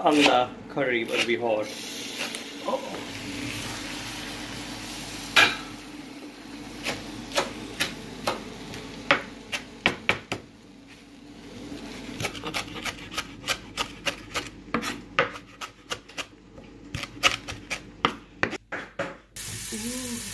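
A knife chops quickly on a cutting board.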